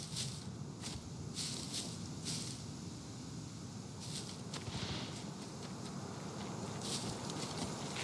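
Footsteps crunch and rustle through dry brush and leaves.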